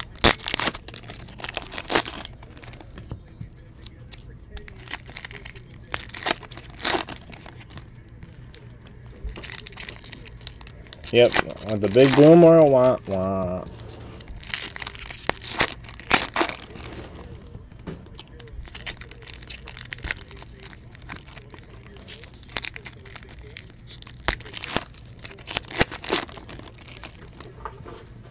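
Foil card packs crinkle and rustle as they are torn open.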